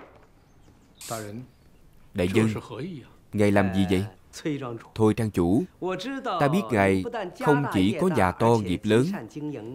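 A middle-aged man speaks calmly, with a questioning tone.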